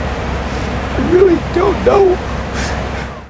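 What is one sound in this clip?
A middle-aged man sobs in a choked, trembling voice close by.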